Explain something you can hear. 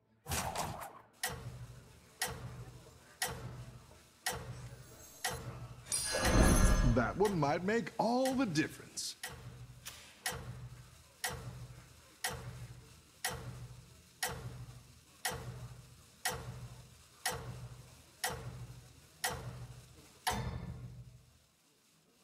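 A game's ticking countdown plays in a steady rhythm.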